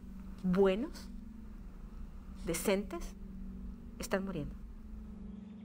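A woman speaks slowly and gravely, close by.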